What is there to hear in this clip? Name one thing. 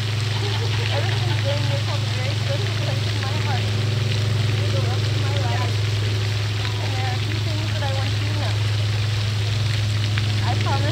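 A fountain splashes steadily.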